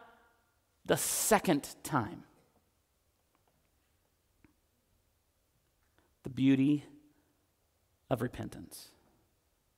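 A man preaches with emphasis through a microphone in a large room, pausing between phrases.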